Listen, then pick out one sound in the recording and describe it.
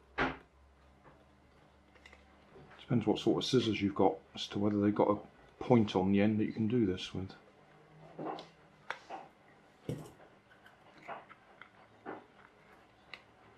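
Small plastic parts click and scrape together.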